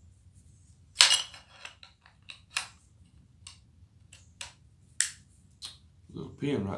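Metal parts of a gun click and clack as they are handled.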